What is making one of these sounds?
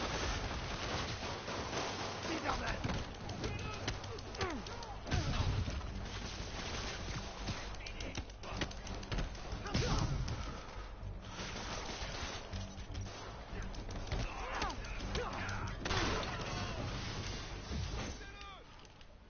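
Blows and impacts thud and crack during a fight.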